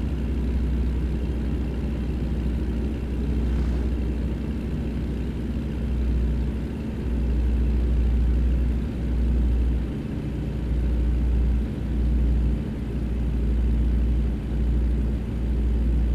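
A heavy truck engine rumbles steadily.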